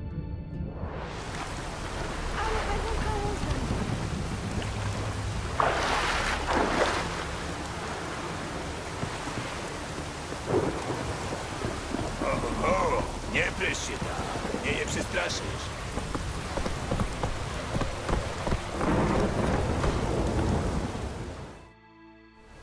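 Rain and wind roar in a storm.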